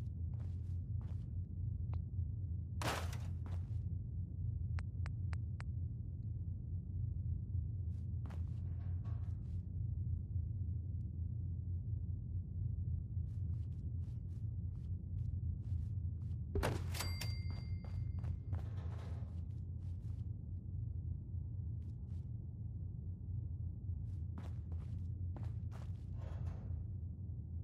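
Short menu clicks tick now and then.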